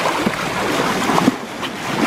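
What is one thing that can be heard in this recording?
Dolphins splash as they surface beside a boat.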